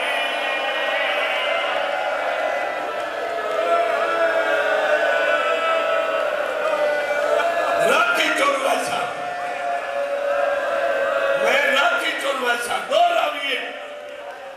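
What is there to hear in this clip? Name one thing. A man speaks with passion into a microphone, his voice carried by loudspeakers.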